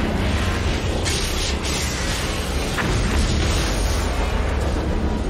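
A deep, roaring explosion booms and rumbles.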